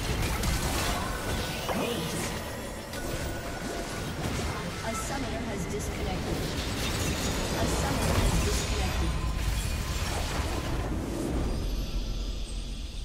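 Game spell effects crackle and explode during a battle.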